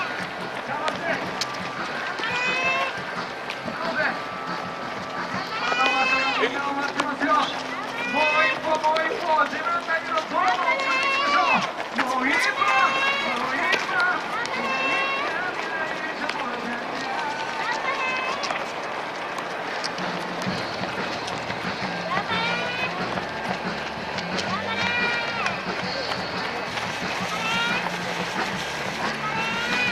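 Many runners' footsteps patter on a paved road.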